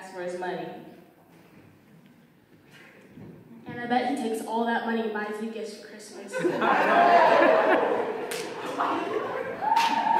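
A girl speaks through a microphone in a large echoing hall.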